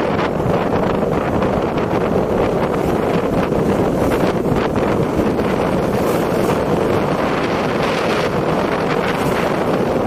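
A motorcycle engine drones steadily close by.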